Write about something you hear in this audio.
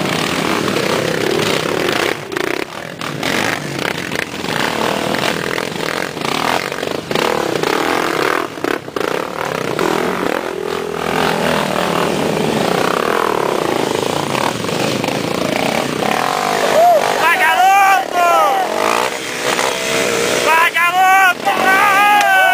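Dirt bike engines rev and roar loudly as they climb a rough slope.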